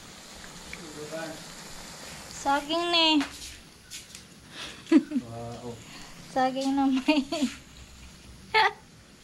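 A young man speaks casually close by.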